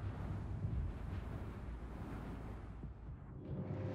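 Heavy metal doors slide open with a mechanical whoosh.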